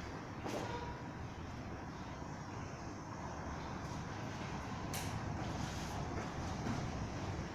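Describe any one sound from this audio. Fabric rustles as two people grapple.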